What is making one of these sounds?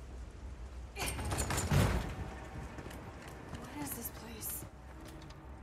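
Wooden ladder rungs creak and knock under climbing steps.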